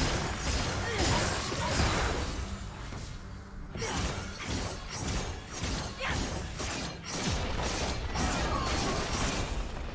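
Game spell effects and hits crackle and clash in a fight.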